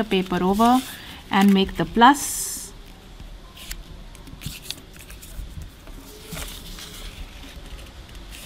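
Paper rustles and crinkles softly as it is folded by hand.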